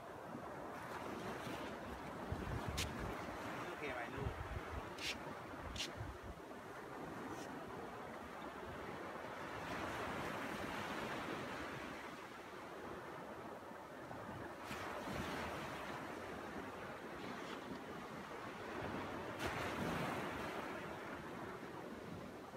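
Waves wash gently onto a beach.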